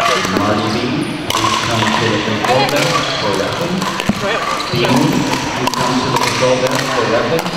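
Men and women chatter nearby in a large echoing hall.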